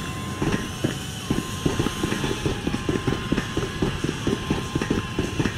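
Footsteps clang quickly down metal stairs.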